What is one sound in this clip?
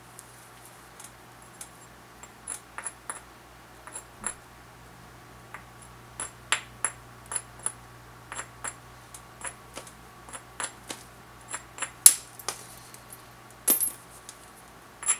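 Sharp clicks and snaps come as flakes break off a flint.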